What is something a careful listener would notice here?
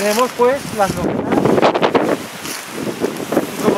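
Leafy plants rustle as a man brushes through them.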